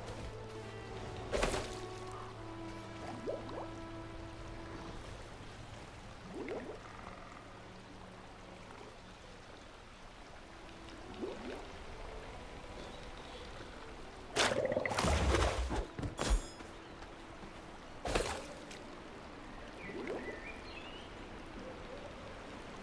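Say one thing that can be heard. Water in a stream flows gently.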